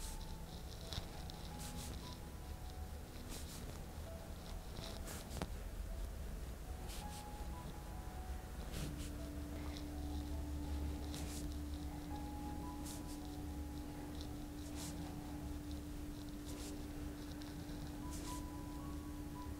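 Hands rub and press on a towel with a soft rustle.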